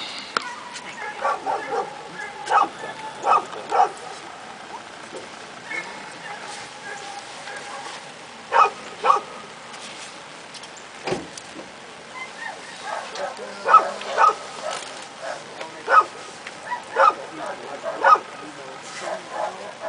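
A man calls out short, sharp commands to a dog from across an open field.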